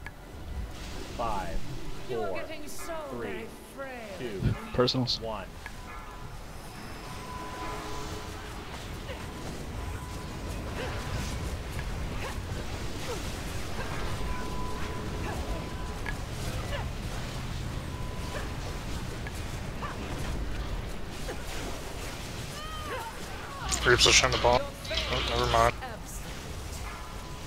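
Magic spells crackle and whoosh in a busy battle.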